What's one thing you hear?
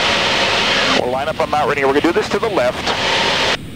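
A man speaks calmly over an intercom.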